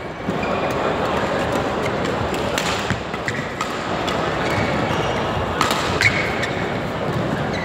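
A large indoor hall echoes with a steady murmur of many people.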